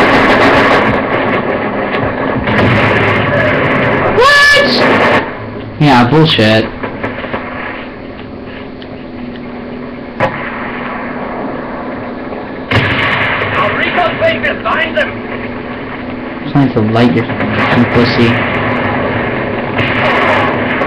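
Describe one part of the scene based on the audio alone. Gunshots and explosions from a video game play through a television speaker.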